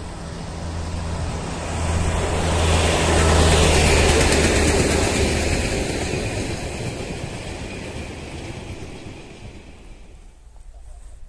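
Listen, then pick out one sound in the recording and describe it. A rail vehicle rumbles past on the tracks with a deep engine hum.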